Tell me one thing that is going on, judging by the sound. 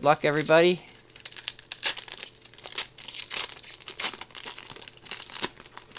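A foil wrapper crinkles and crackles close by.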